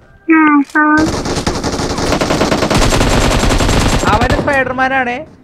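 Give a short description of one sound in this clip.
An automatic rifle fires in a rapid burst of shots.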